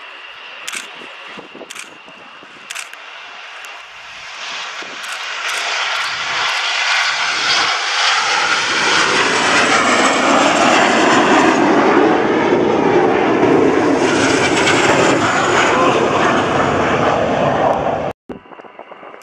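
Jet engines roar loudly as a group of planes takes off and climbs overhead.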